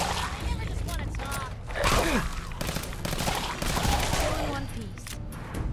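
A creature snarls and growls close by.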